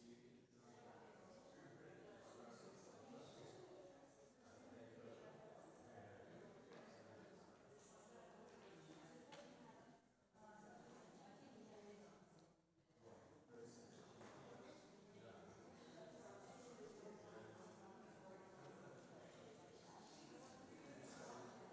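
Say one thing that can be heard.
Many men and women chat in a murmur that echoes through a large hall.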